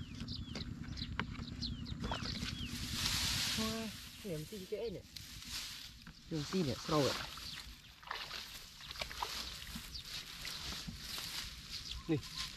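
Eggs clink softly against each other in a plastic bucket.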